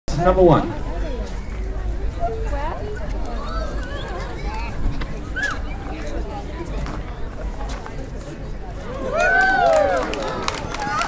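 A young man talks loudly to the crowd.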